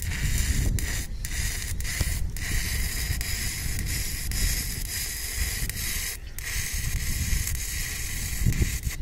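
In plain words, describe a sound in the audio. An electric arc welder crackles and hisses steadily, with brief breaks.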